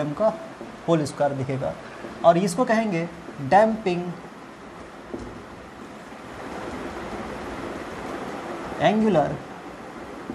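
A young man speaks calmly nearby, explaining.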